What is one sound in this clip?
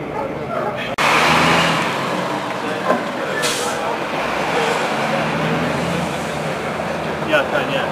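A fire engine's diesel engine idles nearby.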